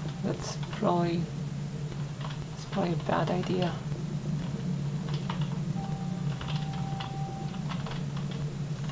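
Computer keys click and clatter under quick typing.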